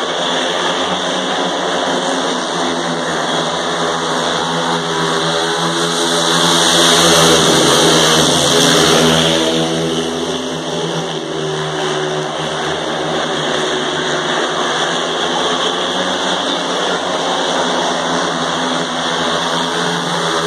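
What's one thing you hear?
Speedway motorcycle engines roar and whine around an outdoor track, growing loudest as the bikes pass close by.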